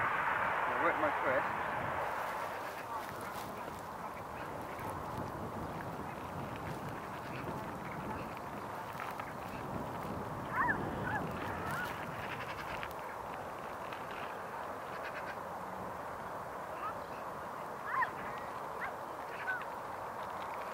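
Jet engines roar steadily as an airliner approaches and lands.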